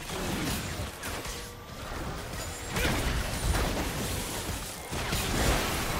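Game characters' weapons clash and thud.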